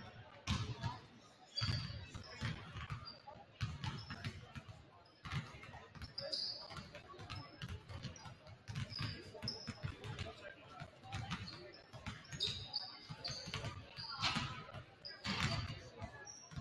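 Basketballs bounce on a wooden floor, echoing in a large hall.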